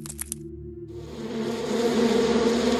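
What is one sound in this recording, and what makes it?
A bee buzzes close by.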